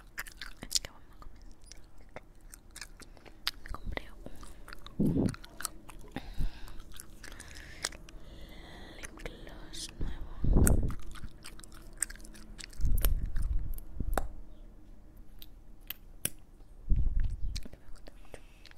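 Lips smack and click wetly right against a microphone.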